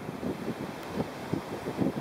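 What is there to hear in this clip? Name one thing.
Small waves wash gently onto a shore.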